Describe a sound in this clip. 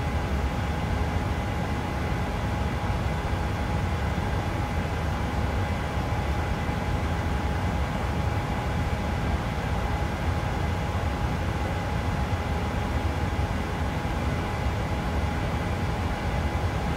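Jet engines hum steadily with a low cockpit rumble.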